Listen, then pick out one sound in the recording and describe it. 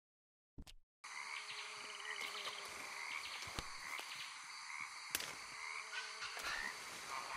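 Leaves and undergrowth rustle in a forest.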